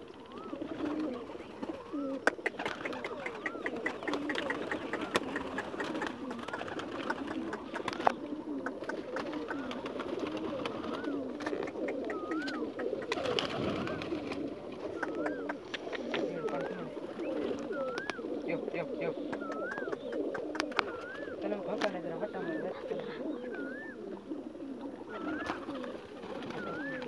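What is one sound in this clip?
Pigeon wings flap and clatter.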